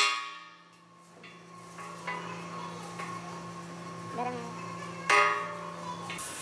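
A hammer strikes metal with sharp clangs.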